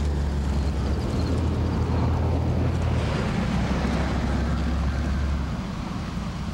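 A van engine rumbles as it drives past and away.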